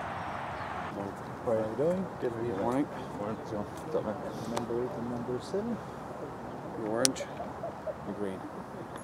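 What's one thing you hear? A man talks briefly outdoors.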